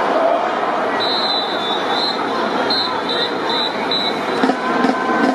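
Drum majors blow sharp whistles in short bursts.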